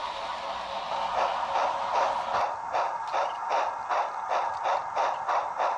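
Model train wheels click quickly and evenly over rail joints.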